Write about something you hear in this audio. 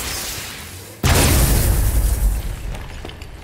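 Tangled roots burst apart with a loud crackling whoosh.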